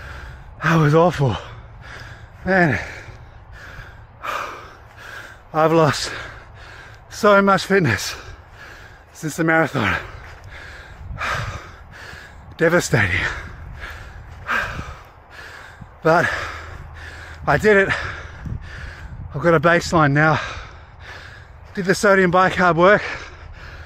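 A man talks with animation close to the microphone, slightly out of breath.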